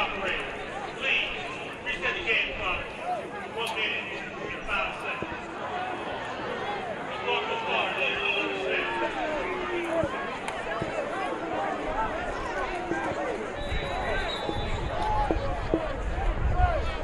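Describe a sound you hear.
A large crowd cheers and shouts in the stands outdoors.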